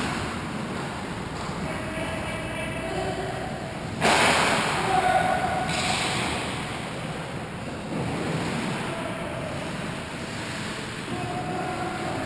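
Distant players' skates and sticks clatter in a large echoing rink.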